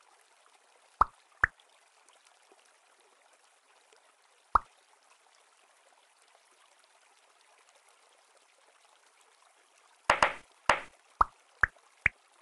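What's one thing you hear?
Short bright electronic pops sound now and then.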